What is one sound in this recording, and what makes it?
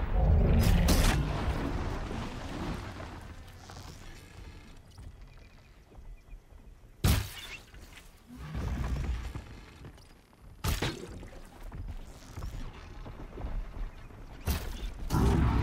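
Arrows are loosed from a bow with sharp twangs.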